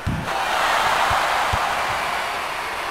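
A basketball thuds as it bounces on the court.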